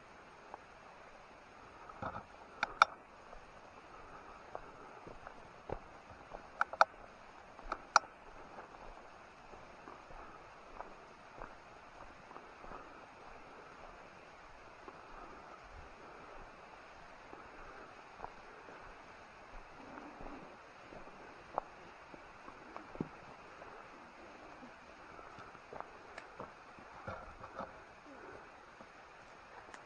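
Leaves and ferns rustle as they brush past.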